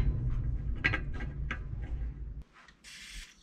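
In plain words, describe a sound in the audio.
A ratchet clicks as a bolt is tightened on a metal pipe.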